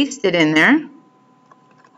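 A young woman speaks briefly and calmly, close to a microphone.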